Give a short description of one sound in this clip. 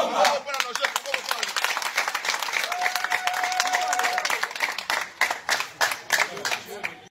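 A crowd of men claps hands in rhythm close by.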